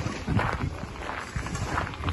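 A dog's paws patter on gravel.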